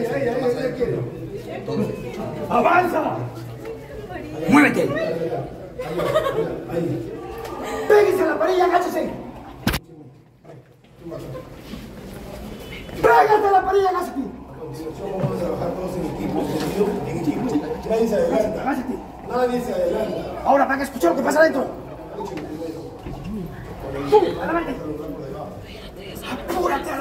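Men talk and shout loudly nearby in a crowd.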